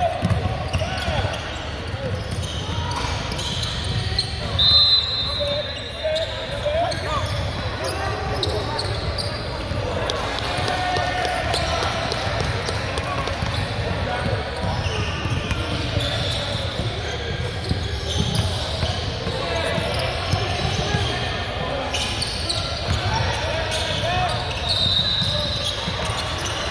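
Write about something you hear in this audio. Voices of a crowd chatter throughout a large echoing gym.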